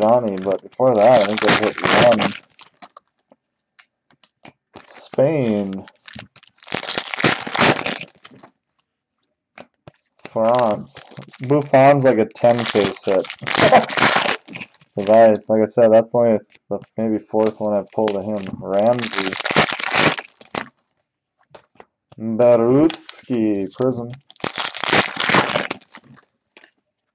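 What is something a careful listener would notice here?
Foil wrappers crinkle and tear open.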